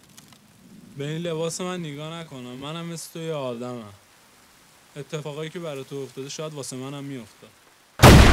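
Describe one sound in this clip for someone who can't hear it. A young man speaks calmly and earnestly, close by.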